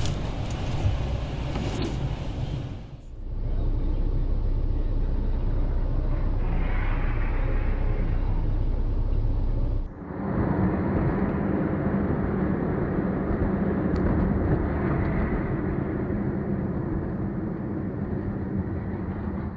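Tyres roll on the road with a steady rumble from inside a moving car.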